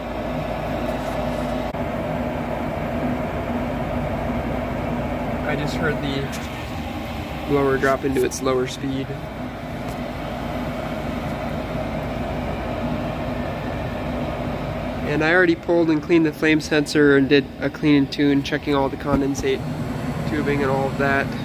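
A gas furnace hums steadily.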